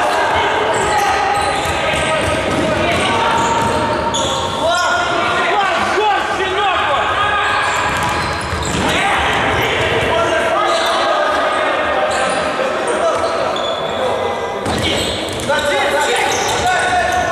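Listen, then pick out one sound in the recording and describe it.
A ball thumps off a player's foot now and then.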